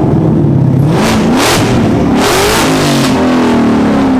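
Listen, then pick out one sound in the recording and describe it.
Exhaust pops and crackles from a sports car.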